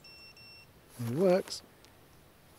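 A man calls out briefly.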